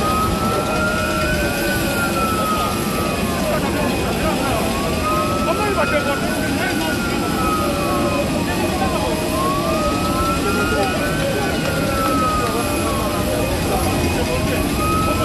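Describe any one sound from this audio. A crowd of men talk and murmur close by outdoors.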